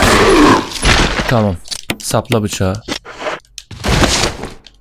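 A man speaks into a microphone close by.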